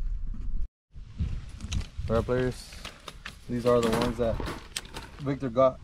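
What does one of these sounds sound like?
A wire mesh trap rattles and clinks.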